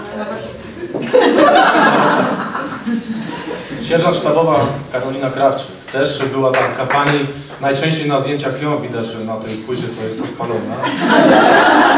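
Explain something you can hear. A man speaks loudly, reading out.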